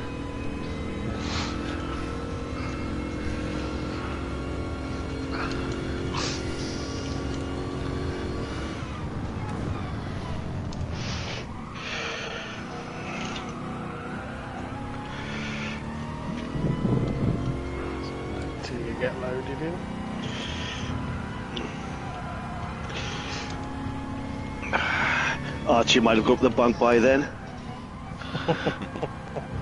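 A racing car engine roars steadily, rising and dropping in pitch as gears change.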